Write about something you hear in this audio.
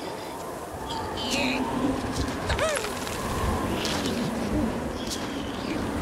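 A small animal squeals and chatters in panic.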